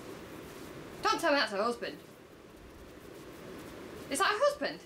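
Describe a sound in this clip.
A young woman speaks close by in short, calm phrases.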